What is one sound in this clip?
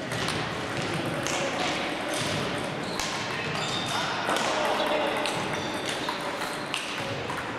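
Shoes squeak on the floor in a large echoing hall.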